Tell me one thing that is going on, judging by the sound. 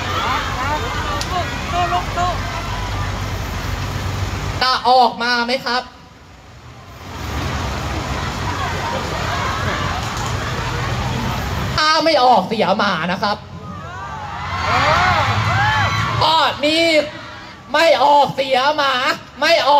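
A crowd of people shouts and clamours close by.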